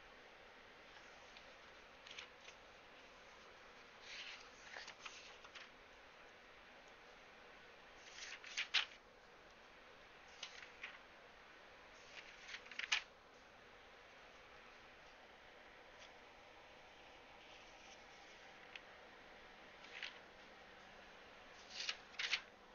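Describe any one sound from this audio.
Keyboard keys clatter in short bursts, close by.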